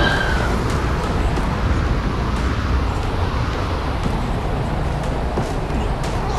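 Footsteps thud on soft ground.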